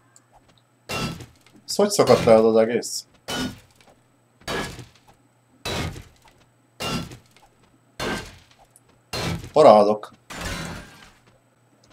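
A pickaxe strikes a hard surface with sharp, regular knocks.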